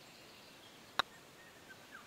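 A golf putter taps a ball with a short click.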